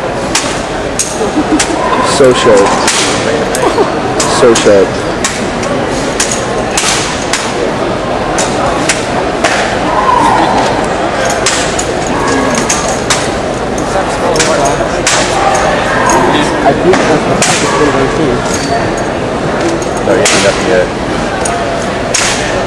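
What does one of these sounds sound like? A rifle clacks sharply against hands in a large echoing hall.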